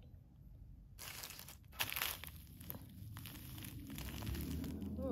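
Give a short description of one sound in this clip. Plastic sheeting crinkles under a hand.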